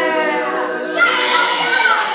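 A woman blows out candles with a short puff.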